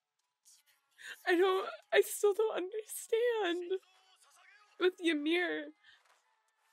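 A young woman speaks emotionally into a close microphone, her voice wavering.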